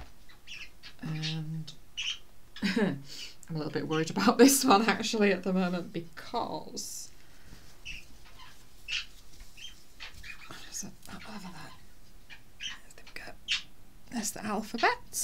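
A middle-aged woman talks warmly and chattily, close to the microphone.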